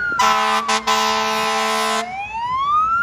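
A fire engine's air horn blares loudly.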